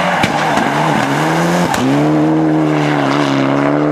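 Tyres skid and spray gravel on a loose road.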